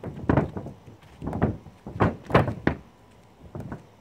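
A stick clanks against a metal paint can.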